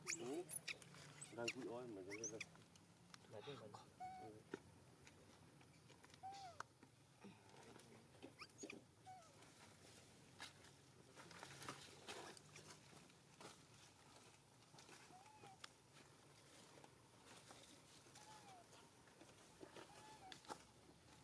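A baby macaque squeaks and whimpers.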